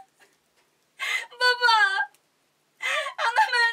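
A young woman cries out tearfully.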